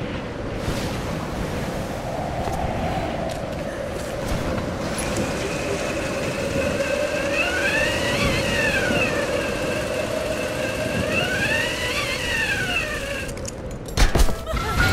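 Wind blows hard over crashing waves.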